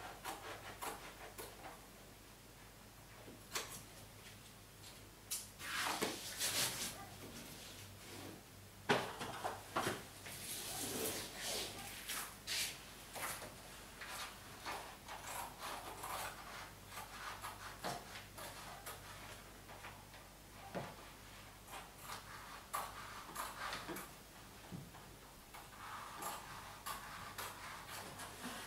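Wallpaper rustles and crinkles as it is brushed flat against a wall.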